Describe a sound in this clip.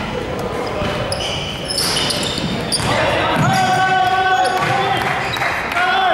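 Sneakers squeak sharply in a large echoing gym.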